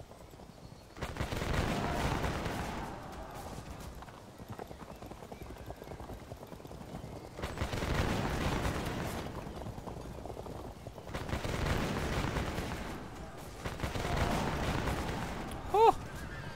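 Musket volleys rumble in bursts.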